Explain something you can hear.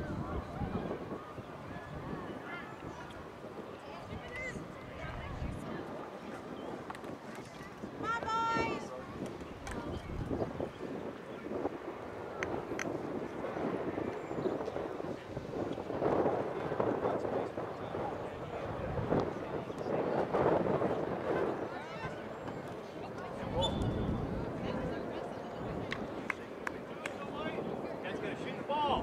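Distant players shout to each other across an open field outdoors.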